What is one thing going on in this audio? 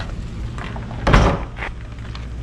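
A plastic dumpster lid thuds shut.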